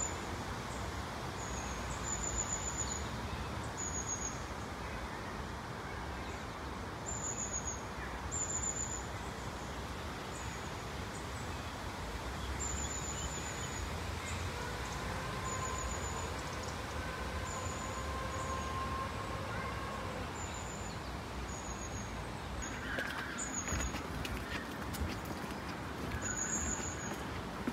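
Wind rustles through leafy trees.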